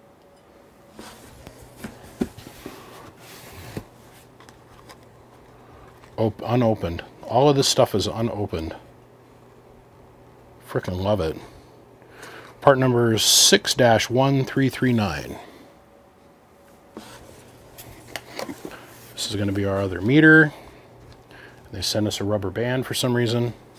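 A small cardboard box is handled with light taps and scrapes.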